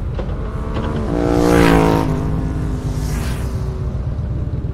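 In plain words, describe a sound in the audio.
Oncoming motorcycles roar past and fade.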